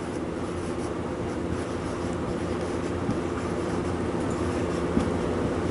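A marker squeaks and scratches across a whiteboard.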